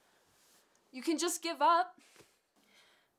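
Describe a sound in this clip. A young woman speaks with a laugh, close by.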